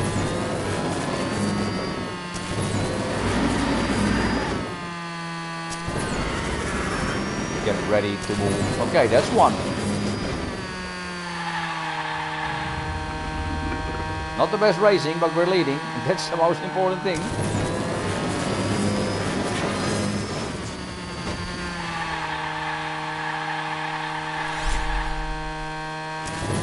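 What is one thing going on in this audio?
A racing car engine whines and revs steadily.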